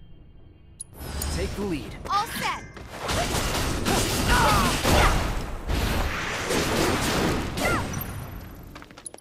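Swords clash and slash in a fast fight.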